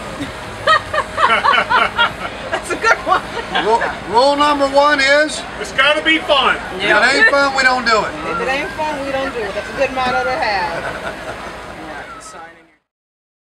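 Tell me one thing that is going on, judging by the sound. A middle-aged man talks cheerfully and close by.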